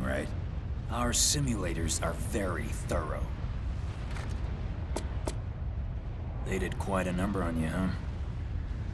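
A younger man answers calmly.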